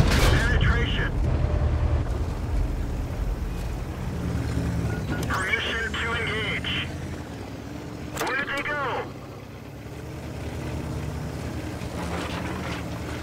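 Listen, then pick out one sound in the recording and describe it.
A tank engine rumbles low and steady as the tank drives.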